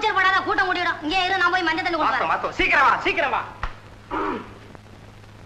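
A woman sings in reply.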